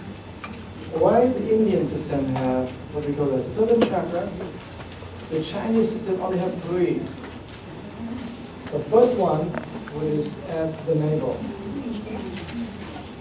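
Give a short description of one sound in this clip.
A man speaks calmly, close by in a room.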